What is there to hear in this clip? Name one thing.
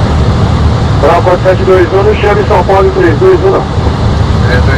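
A man speaks briefly over a headset radio.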